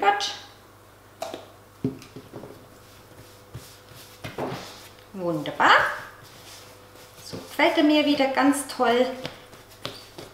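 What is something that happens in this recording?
A woman talks calmly, close by.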